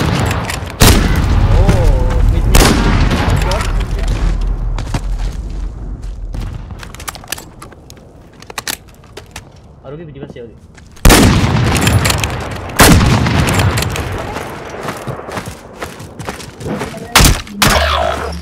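Loud gunshots crack and boom, echoing outdoors.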